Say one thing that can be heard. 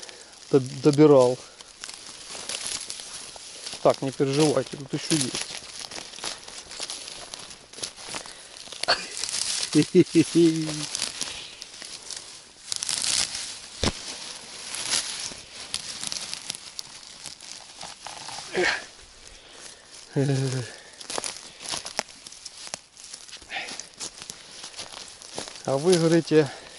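Grass and leaves rustle close by as someone pushes through them.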